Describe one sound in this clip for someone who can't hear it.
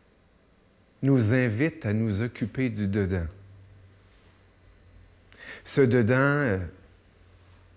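A middle-aged man speaks calmly and clearly into a microphone.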